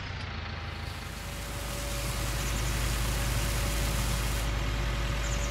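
Grain pours from a trailer with a hissing rush.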